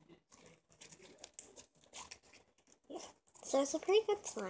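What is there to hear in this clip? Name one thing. Slime squelches and crackles between hands.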